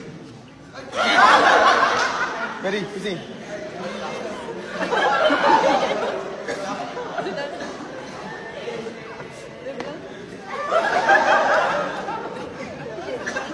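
A crowd laughs and chatters loudly in a large echoing hall.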